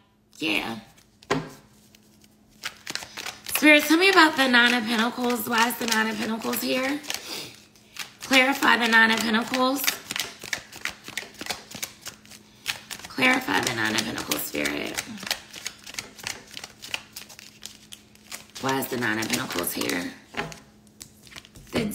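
Cards shuffle and riffle in a woman's hands.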